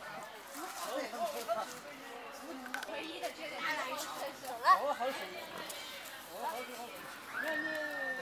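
A pig grunts and snuffles at the ground.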